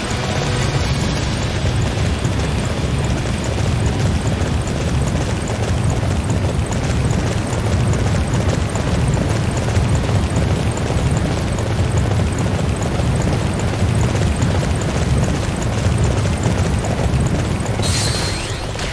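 A horse gallops with steady, rapid hoofbeats.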